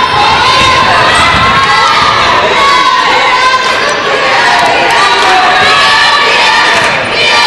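A crowd of spectators cheers and shouts loudly in a large echoing gym.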